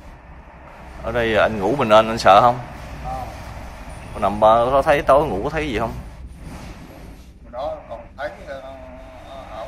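A middle-aged man speaks calmly close by, in a room with a slight echo.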